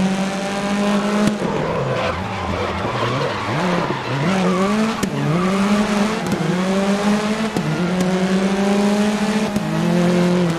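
A race car engine roars, dropping in pitch through a slow corner and rising again as it speeds up.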